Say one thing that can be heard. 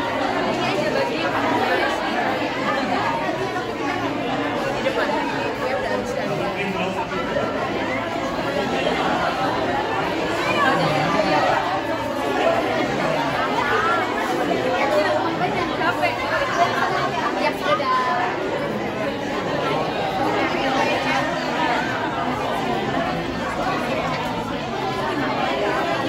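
A crowd of women chatters throughout, many voices overlapping close by.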